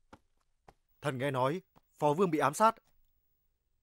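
A man speaks forcefully, close by.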